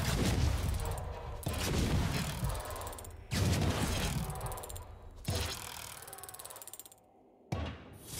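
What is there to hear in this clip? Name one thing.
A heavy chest lands with a deep booming thud, again and again.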